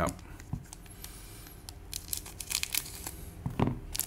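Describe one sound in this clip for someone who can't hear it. Scissors snip through a foil wrapper.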